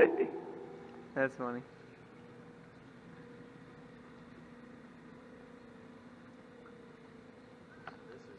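A small boat motor hums steadily.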